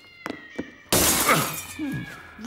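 Glass smashes with a sharp crash.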